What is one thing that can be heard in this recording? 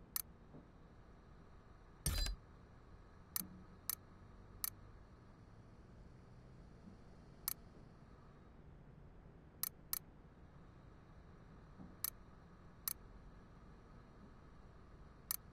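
Short, sharp menu clicks sound every second or two.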